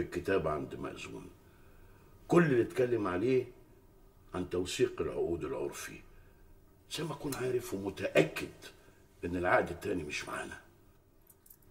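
A middle-aged man talks with animation, close by.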